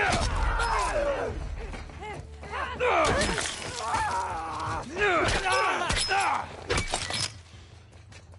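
A creature shrieks and snarls loudly during a violent struggle.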